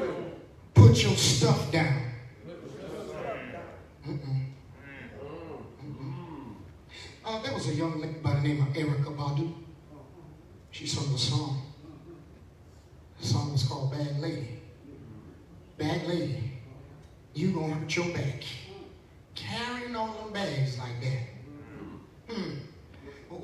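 A man preaches with feeling into a microphone, his voice echoing in a large room.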